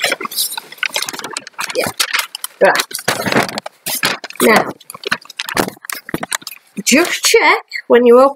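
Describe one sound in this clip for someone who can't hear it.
Paper rustles and crinkles in a woman's hands.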